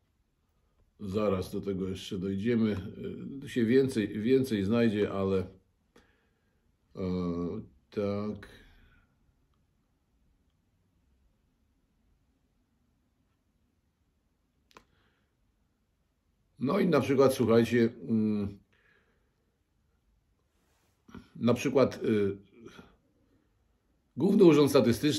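A middle-aged man speaks calmly and closely into a microphone, with long pauses.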